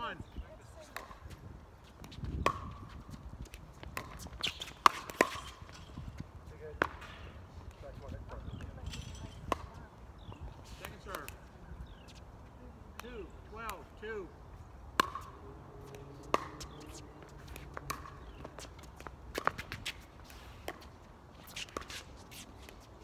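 Plastic paddles sharply pop against a ball outdoors, back and forth.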